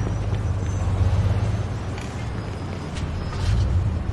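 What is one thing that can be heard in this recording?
A car engine rumbles as it drives off.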